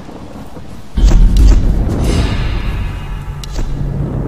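A fire bursts into flames with a loud whoosh.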